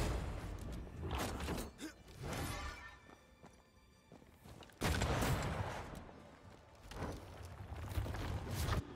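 A sword swings and strikes with sharp hits.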